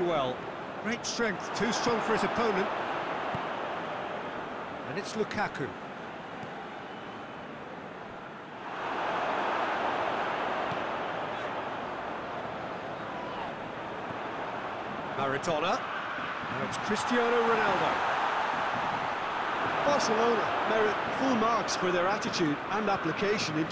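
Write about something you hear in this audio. A football is kicked with short, dull thumps.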